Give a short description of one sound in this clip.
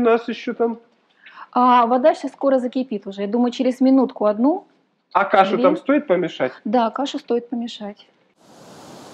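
A woman talks calmly, close to a microphone.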